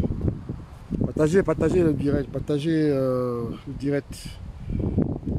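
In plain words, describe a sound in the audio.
An elderly man speaks with animation close to a phone microphone.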